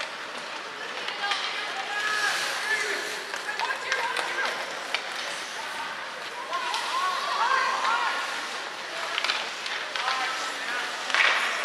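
Players shout and call out to each other across the ice.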